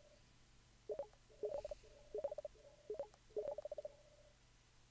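Short soft beeps chatter in quick bursts.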